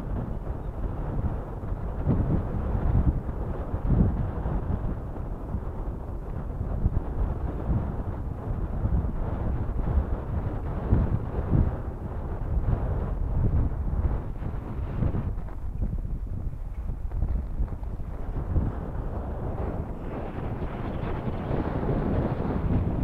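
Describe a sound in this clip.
Water laps and splashes against rocks.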